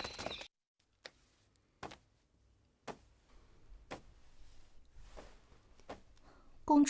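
Footsteps tap on a hard floor in a quiet, echoing room.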